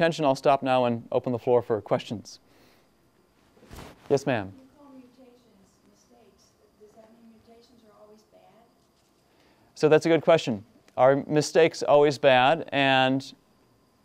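A young man speaks calmly to an audience.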